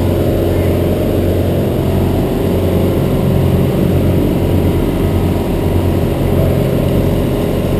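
A diesel engine drones steadily and loudly close by.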